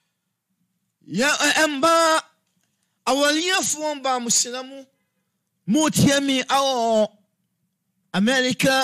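A man speaks calmly and with a sing-song lilt, close to a microphone.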